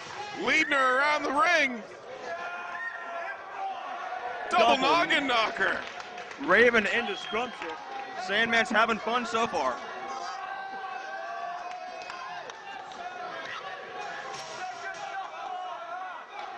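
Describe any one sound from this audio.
A crowd of people shouts and chants in a large echoing hall.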